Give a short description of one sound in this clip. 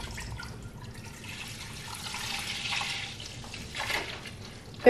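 Milk pours and splashes into a pot.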